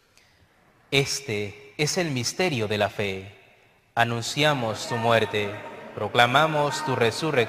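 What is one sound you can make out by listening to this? A man chants prayers aloud through a microphone in a reverberant hall.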